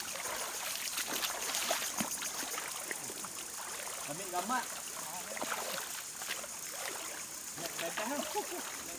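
Shallow water trickles and babbles over stones.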